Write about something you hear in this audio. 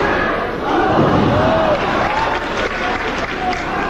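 Bodies thud onto a ring mat.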